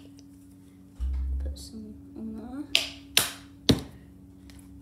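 A plastic sauce bottle squirts and splutters.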